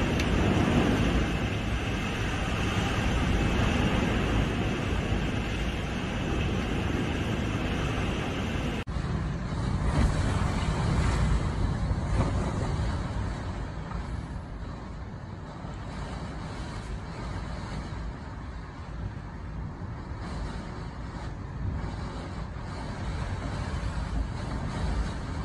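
Strong wind roars and gusts through trees.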